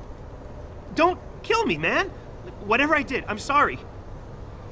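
A man speaks in a low, apologetic voice.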